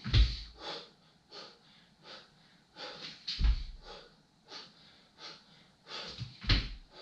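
Bare feet thud softly on a floor mat.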